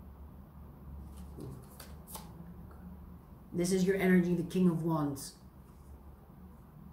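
Cards shuffle softly in a woman's hands.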